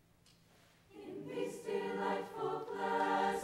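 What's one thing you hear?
A choir begins to sing in a large hall.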